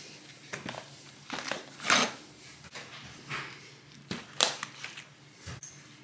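Plastic containers knock and clatter against each other.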